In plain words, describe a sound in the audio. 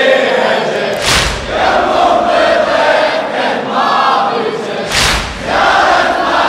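A crowd of men beats their chests in unison.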